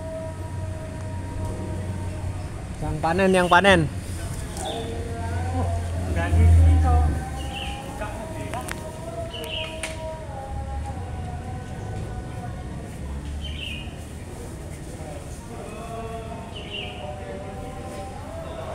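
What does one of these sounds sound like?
Leaves rustle in a tree.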